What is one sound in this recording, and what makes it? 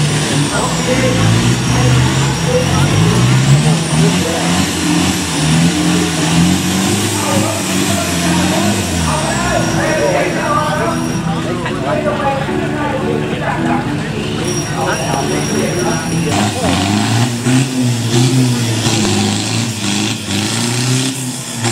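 A truck engine revs hard and labours through deep mud.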